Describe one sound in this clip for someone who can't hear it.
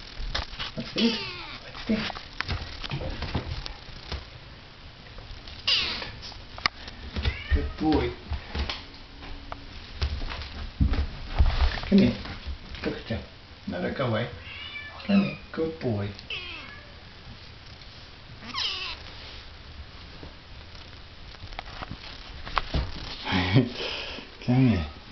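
A kitten meows repeatedly, close by.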